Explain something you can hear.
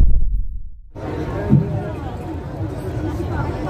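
A drum group plays loudly outdoors.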